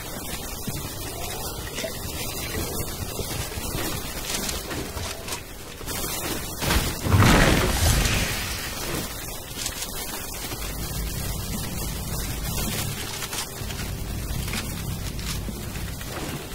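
Game footsteps run over ground.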